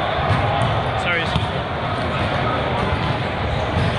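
A volleyball is struck hard with a hand.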